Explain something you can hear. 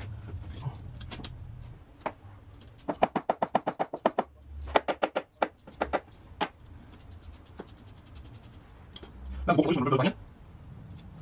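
Metal parts clink and knock under a vehicle.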